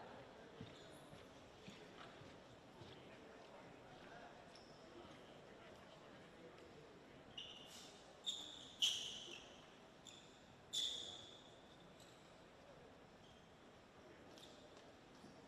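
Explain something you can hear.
A crowd murmurs softly in the stands.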